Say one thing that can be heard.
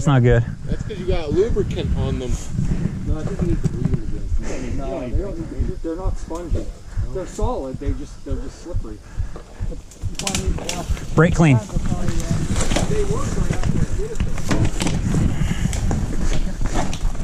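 Bicycle tyres roll and rattle over a bumpy dirt trail.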